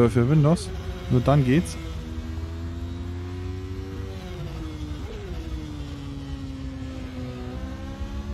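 A racing car engine drones and whines, its pitch rising and falling with gear changes.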